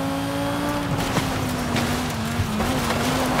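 Gravel crunches under a car's tyres.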